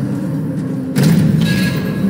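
A weapon strikes with a sharp hit in a fight.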